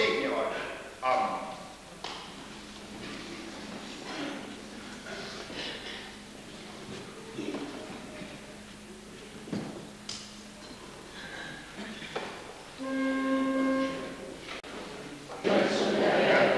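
A man speaks quietly at a distance in a large echoing room.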